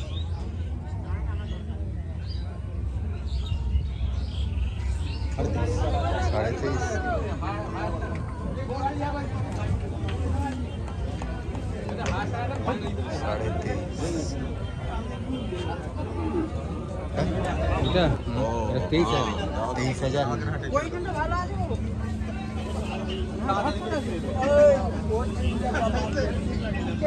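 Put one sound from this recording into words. A crowd murmurs in the distance outdoors.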